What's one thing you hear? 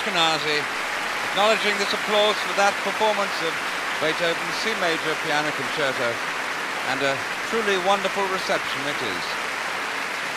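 An orchestra plays a final passage in a large hall.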